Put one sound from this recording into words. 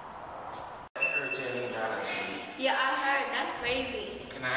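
A teenage girl talks casually close by.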